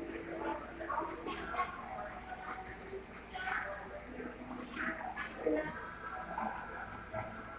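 A ceiling fan spins with a low hum.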